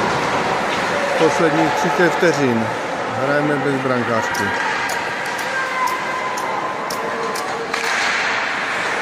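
Hockey sticks click against the puck on the ice.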